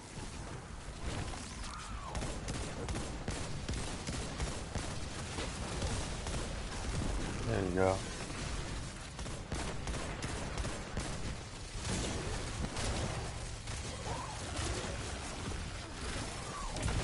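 Rapid gunfire rattles with loud blasts and explosions.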